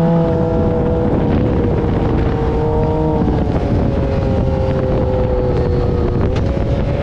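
Sand crunches and thumps under tyres.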